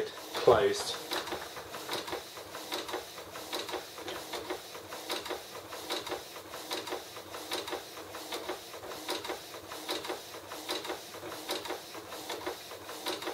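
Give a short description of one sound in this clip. A printer whirs and clicks rhythmically as it prints.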